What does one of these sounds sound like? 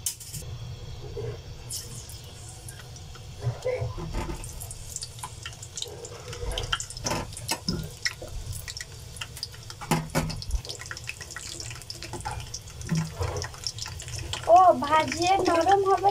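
Vegetables drop with soft splashes into water in a pan.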